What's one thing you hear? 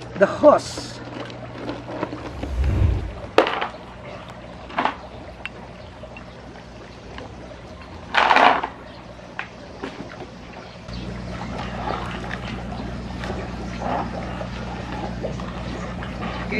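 Water churns and splashes steadily outdoors.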